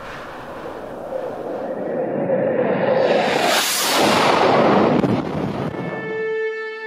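A rock rushes through the air with a swelling whoosh.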